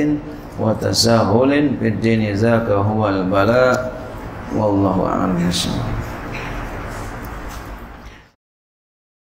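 A middle-aged man recites in a chanting voice through a microphone.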